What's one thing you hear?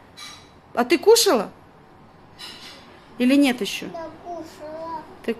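A little girl speaks in a high, lively voice close by.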